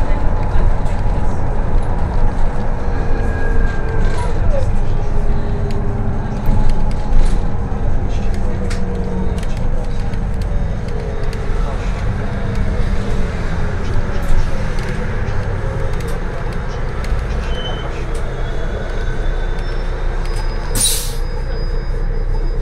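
A bus engine hums and rumbles steadily from inside the cabin.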